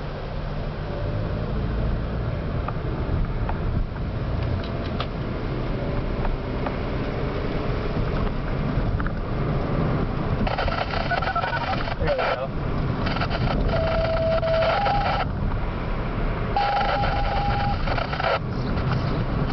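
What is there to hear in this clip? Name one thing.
A car engine rumbles steadily from inside as the car drives along.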